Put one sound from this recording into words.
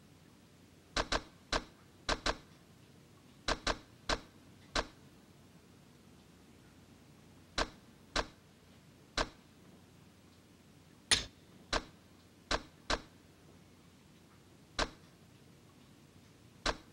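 Short electronic blips sound as a menu cursor moves.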